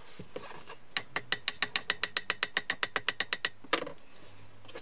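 A knife scores a board with a rapid run of scratching strokes.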